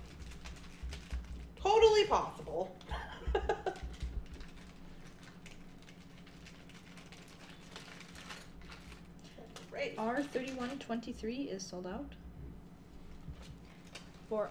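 Plastic packaging crinkles in someone's hands.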